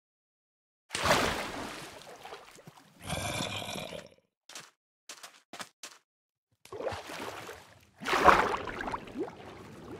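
Water splashes and bubbles in a video game.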